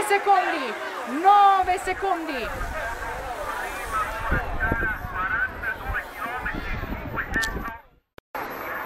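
A crowd of spectators cheers and shouts close by.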